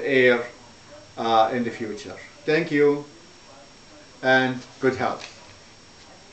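An elderly man speaks calmly and slowly close to the microphone, with pauses.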